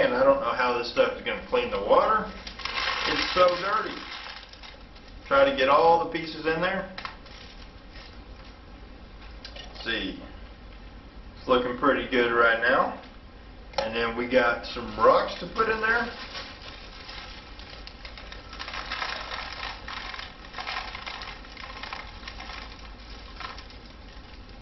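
Plastic crinkles and rustles in a man's hands.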